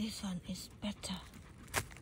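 A knife cuts through a mushroom stem.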